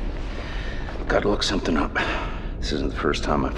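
A woman answers softly close by.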